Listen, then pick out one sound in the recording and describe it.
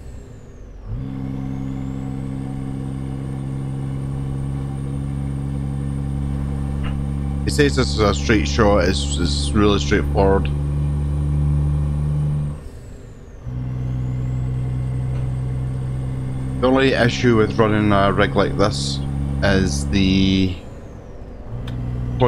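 A heavy truck engine drones steadily, dropping away briefly before droning again.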